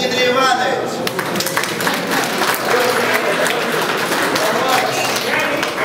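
A crowd claps their hands in applause.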